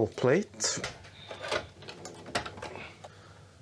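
A metal computer case is lifted open with a light rattle.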